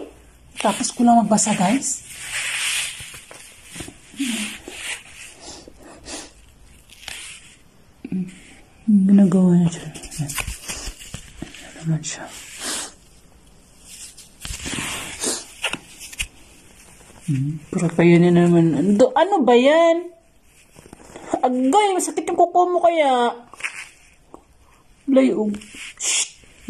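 A young woman speaks softly and playfully close by.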